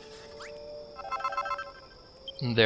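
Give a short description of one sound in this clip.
A chime plays as items are crafted.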